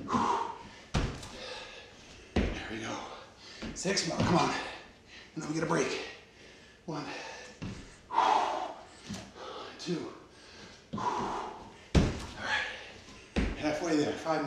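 Feet thud on a wooden floor.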